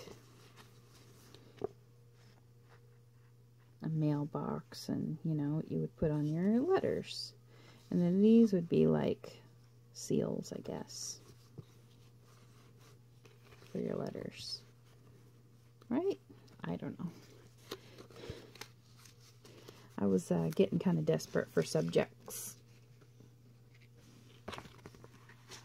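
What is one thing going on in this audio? Paper sheets rustle softly as a hand shuffles through them.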